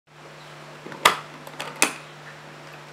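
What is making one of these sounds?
Case latches click open.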